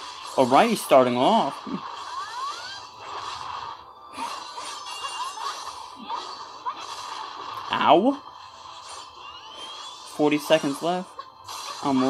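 Sword slashes and energy blasts whoosh and crackle in quick bursts.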